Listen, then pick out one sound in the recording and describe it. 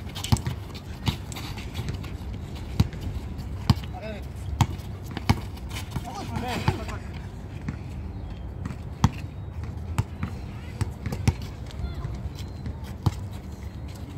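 A basketball bounces on a hard court with sharp thuds.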